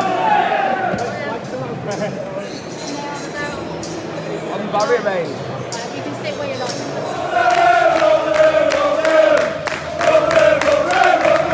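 A large stadium crowd sings loudly together.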